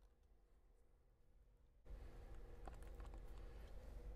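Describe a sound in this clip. A small plastic part taps down on a mat.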